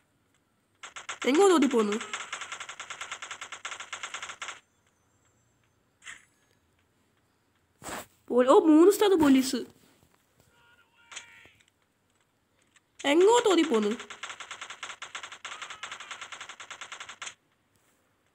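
Rapid gunshots fire in quick bursts.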